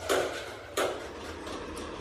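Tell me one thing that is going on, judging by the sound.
Metal tools clank against an engine block.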